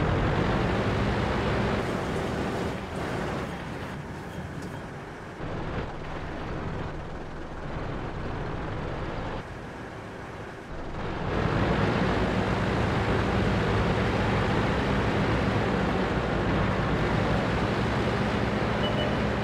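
A tank engine rumbles and roars loudly.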